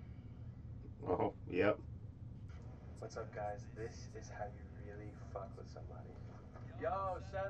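A young man shouts and speaks intensely close by.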